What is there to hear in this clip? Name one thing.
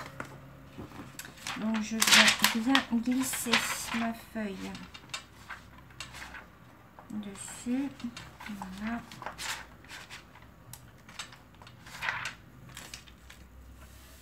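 A plastic sleeve crinkles and rustles as it is handled.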